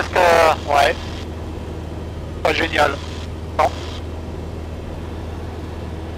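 A light aircraft's engine drones steadily.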